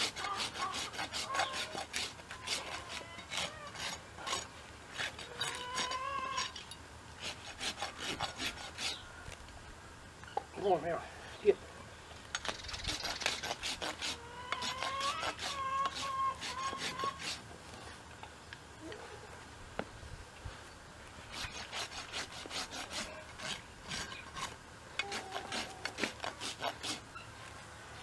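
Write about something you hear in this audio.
A rasp scrapes rhythmically against a horse's hoof.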